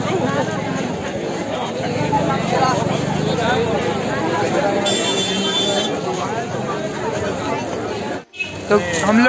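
A dense crowd chatters all around, outdoors.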